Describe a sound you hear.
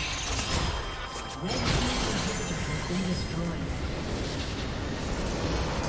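Game spell effects crackle and blast in quick succession.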